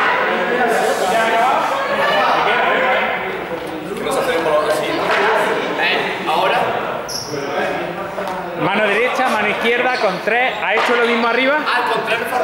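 A young man talks calmly and steadily, close by.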